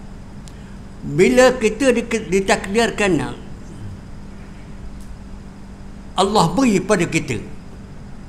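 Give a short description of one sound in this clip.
An elderly man speaks calmly and deliberately into a microphone.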